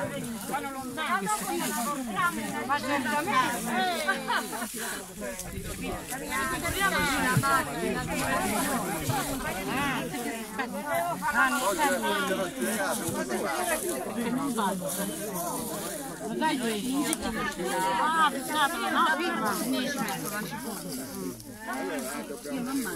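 Several people chatter in the background outdoors.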